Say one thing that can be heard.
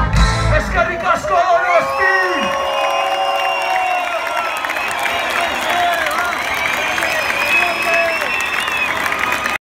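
A large crowd cheers, whistles and screams outdoors.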